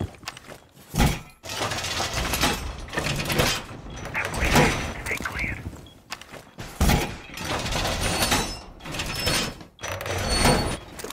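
Heavy metal panels clank and grind into place.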